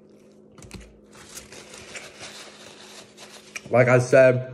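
A paper wrapper crinkles.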